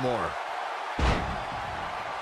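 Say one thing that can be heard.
A body slams heavily onto a wrestling mat with a thud.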